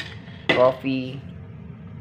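A metal spoon clinks against a metal cup.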